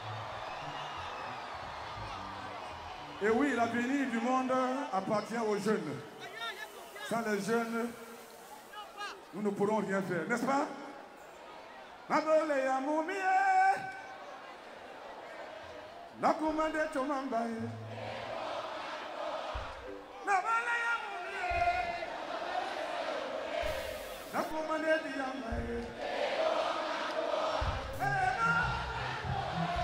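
A large crowd cheers and shouts.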